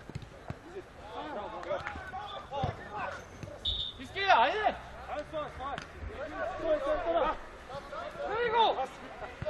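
Men shout to each other across an outdoor football pitch.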